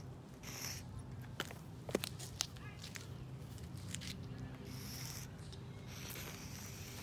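Chalk scrapes and taps on a pavement.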